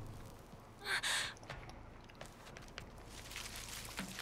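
Footsteps rustle through tall grass and bushes.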